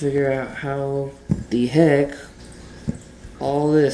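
Small metal parts are set down softly on carpet.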